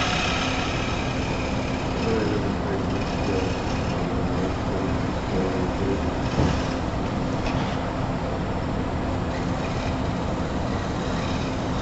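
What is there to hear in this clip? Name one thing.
A chisel scrapes and shaves a spinning block of wood.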